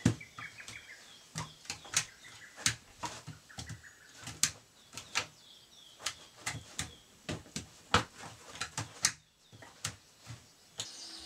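Hands strike a wooden post with sharp knocks, again and again.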